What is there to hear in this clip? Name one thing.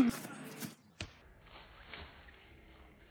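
A boy falls onto grass with a soft thump.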